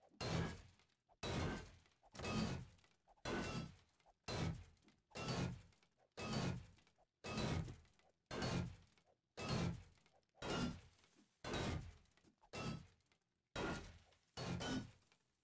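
A pickaxe strikes hard stone in a steady, repeated rhythm, each blow ringing briefly.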